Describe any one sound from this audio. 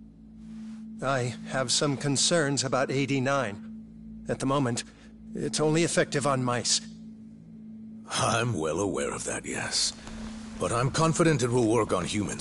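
A middle-aged man speaks calmly and confidently through a close microphone.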